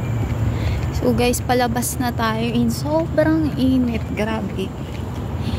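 A young woman speaks close by, casually.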